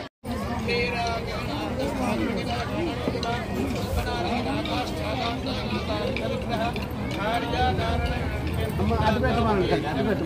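A crowd of men and women talks all at once close by.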